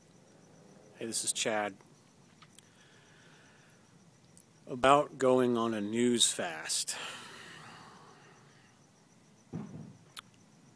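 A middle-aged man speaks close to the microphone in short bursts, outdoors on a quiet night.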